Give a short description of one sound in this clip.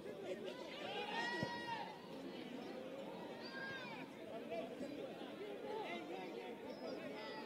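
A crowd of spectators shouts and chatters outdoors.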